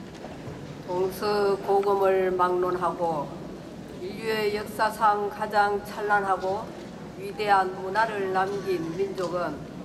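An elderly man speaks calmly into a microphone over loudspeakers in a large echoing hall.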